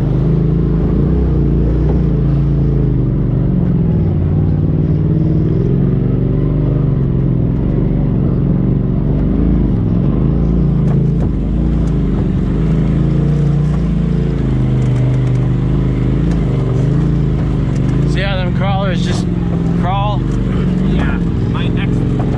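An off-road vehicle's engine drones and revs up and down close by.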